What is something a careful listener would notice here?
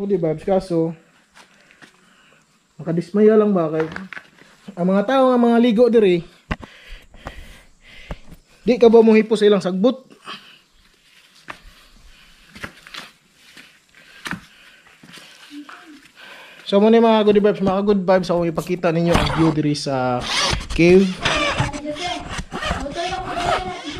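A young man talks calmly and with animation close by.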